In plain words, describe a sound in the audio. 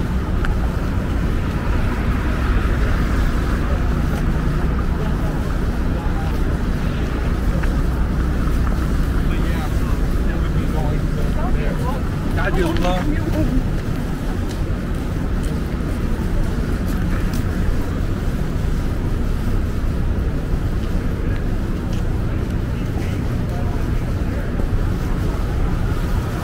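Traffic rumbles steadily nearby outdoors.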